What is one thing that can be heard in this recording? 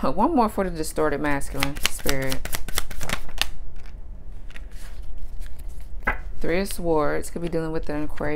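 Playing cards are shuffled with quick flicking and slapping sounds.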